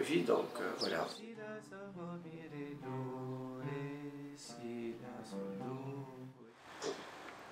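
Ouds are plucked.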